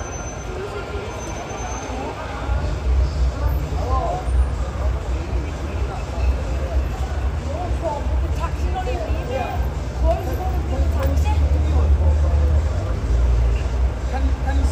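A vehicle engine idles close by with a low rumble.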